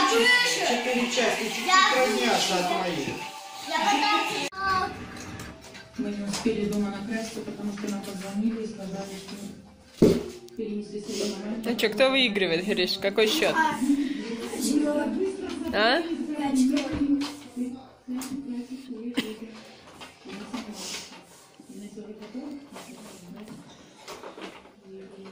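A young boy talks loudly and excitedly nearby.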